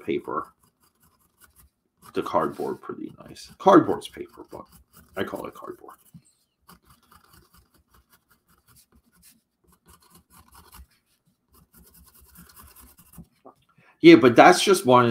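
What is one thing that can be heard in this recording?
A pencil scratches softly on cardboard.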